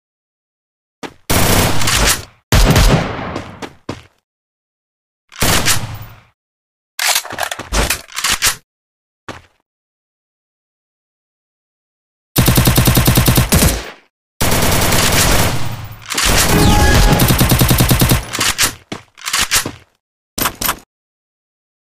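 Gunfire rattles in short rapid bursts.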